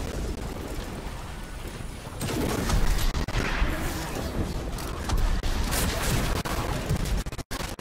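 Gunfire and energy blasts crackle and boom in a video game.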